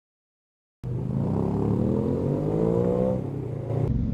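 A motorcycle engine revs up, rising in pitch.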